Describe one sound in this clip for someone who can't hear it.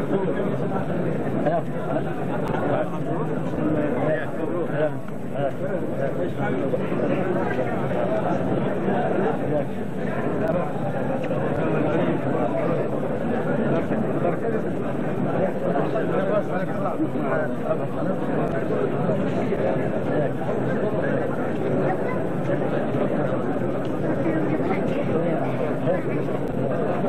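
A crowd of men chatter and greet each other at close range.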